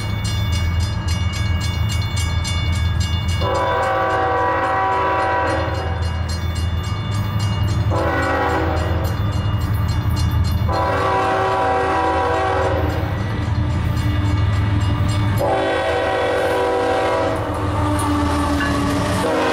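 A diesel locomotive engine rumbles deeply as it approaches and passes close by.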